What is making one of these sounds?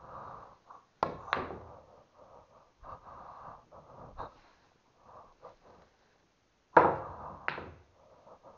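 Pool balls clack sharply against each other.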